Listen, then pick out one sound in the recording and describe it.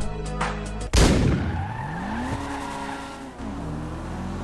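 A car roars past quickly.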